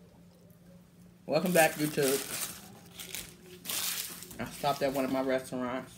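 Paper wrappers crinkle and rustle.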